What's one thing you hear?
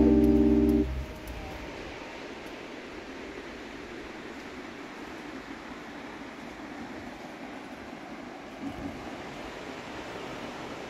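A river flows and gurgles gently outdoors.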